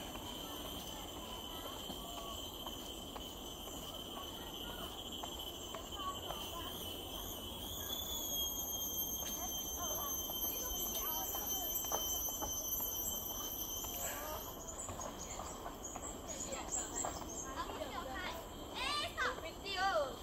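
Footsteps thud on wooden steps going downhill.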